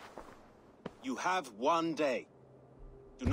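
A man speaks firmly and sternly, close by.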